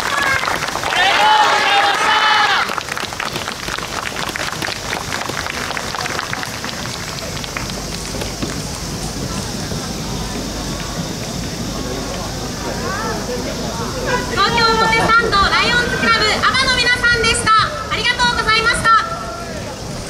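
A group of men and women shout a chant together.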